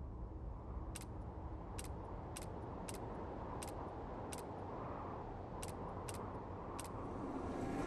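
Short, sharp menu clicks tick one after another.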